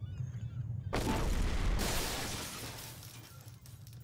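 A bomb explodes with a deep roar.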